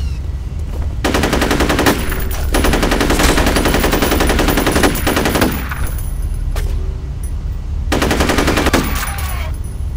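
An automatic rifle fires rapid, loud bursts of gunshots.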